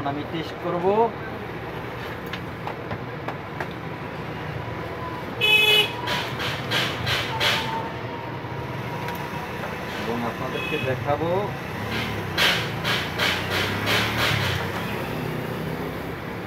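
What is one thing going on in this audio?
Plastic parts click and rattle as a man handles them.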